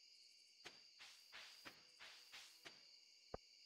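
Soft footsteps rustle through grass.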